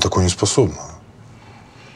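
A man speaks in a low, serious voice close by.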